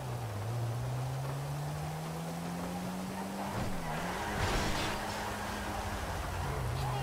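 A car engine hums steadily and revs up as the car drives along a road.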